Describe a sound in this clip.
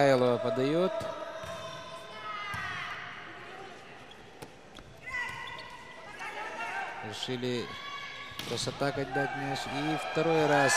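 A crowd murmurs and cheers in the stands.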